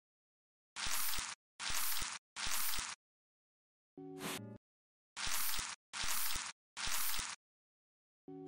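A spray bottle hisses in short bursts.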